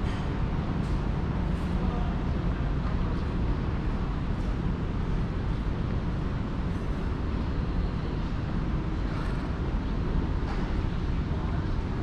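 Footsteps tap on a hard floor in a large echoing corridor.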